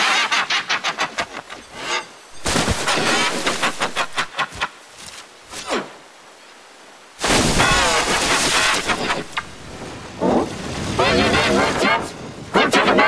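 Prairie dogs chirp and squeak sharply.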